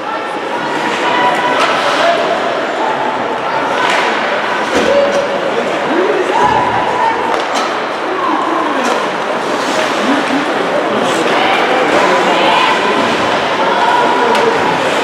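Young players shout and call out across the rink.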